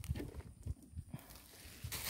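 Footsteps crunch on dry twigs and soil.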